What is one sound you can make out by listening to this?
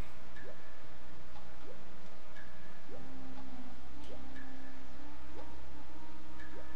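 Synthesized game music plays steadily.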